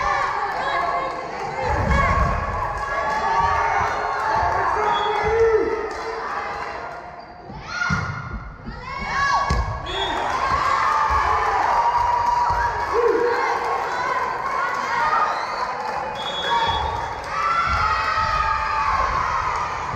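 A volleyball thumps as it is hit.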